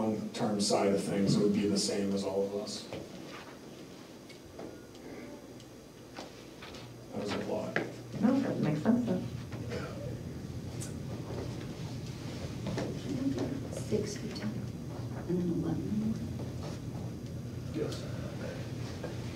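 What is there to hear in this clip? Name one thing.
A man speaks steadily through a microphone in a room with a slight echo.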